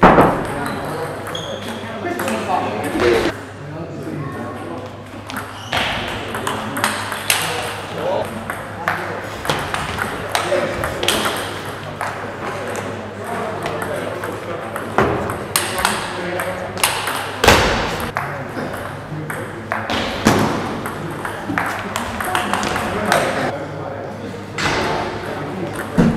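A table tennis ball clicks quickly back and forth off paddles and the table in a large echoing hall.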